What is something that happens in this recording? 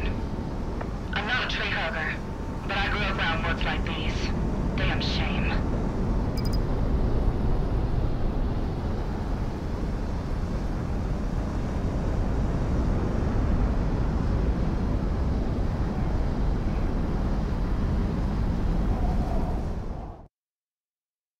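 A jet engine roars steadily.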